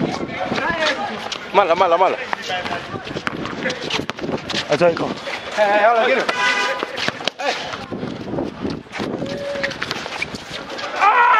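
A basketball bounces on a concrete court.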